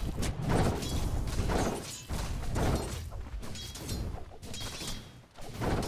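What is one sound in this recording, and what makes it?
Magic blasts burst and crackle.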